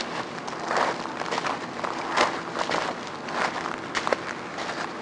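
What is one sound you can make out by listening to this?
Boots crunch quickly on gravel as a person runs.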